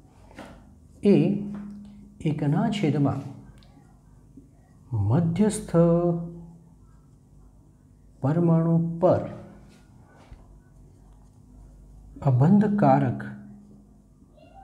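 A man speaks in short bursts, explaining slowly and clearly close by.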